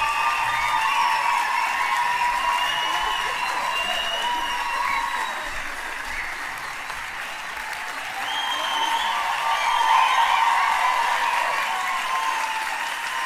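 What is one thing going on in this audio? A large choir of women and men sings together.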